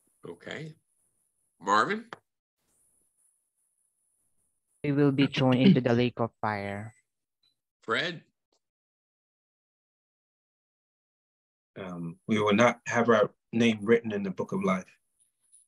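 A man speaks calmly over an online call, in bursts with pauses.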